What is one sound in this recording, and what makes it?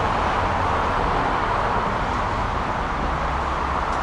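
A shopping cart rattles as its wheels roll over pavement.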